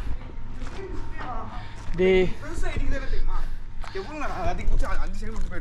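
A man speaks loudly and excitedly close by.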